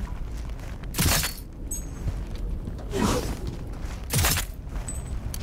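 A pistol fires single loud shots indoors.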